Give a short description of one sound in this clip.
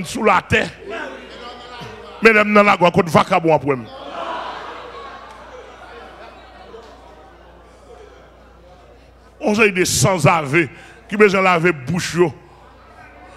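A man speaks forcefully into a microphone in a large echoing hall.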